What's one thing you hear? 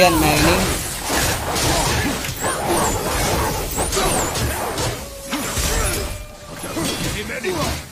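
Electric sparks crackle.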